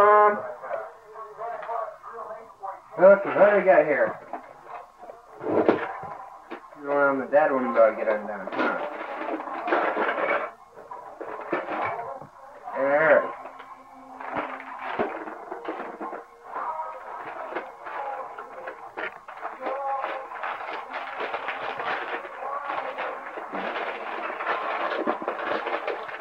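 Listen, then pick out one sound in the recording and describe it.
A man talks warmly to a small child close by.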